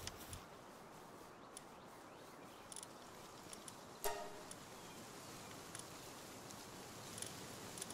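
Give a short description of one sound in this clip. Soft clicks sound as menu items are picked.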